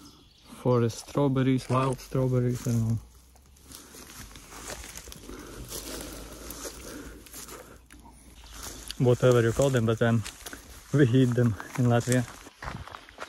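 A young man talks casually and close by.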